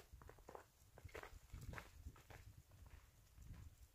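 Footsteps crunch softly in snow.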